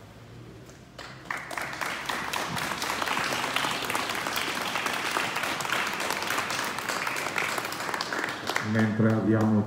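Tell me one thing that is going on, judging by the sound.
A small group of people applaud outdoors.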